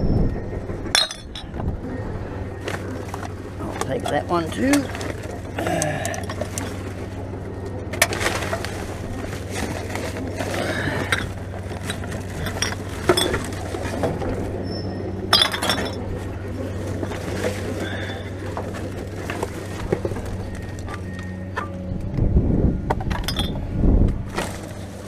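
Objects clatter and knock against the side of a bin.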